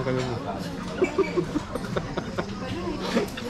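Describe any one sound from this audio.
Cutlery clinks against plates.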